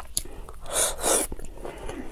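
A young woman chews wetly close to a microphone.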